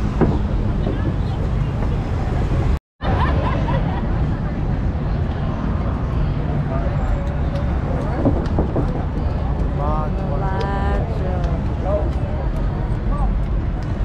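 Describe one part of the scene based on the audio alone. Cars drive past on a busy street.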